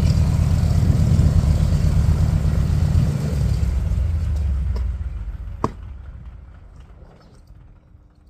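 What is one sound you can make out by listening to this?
A propeller aircraft engine rumbles loudly nearby and then winds down to a stop.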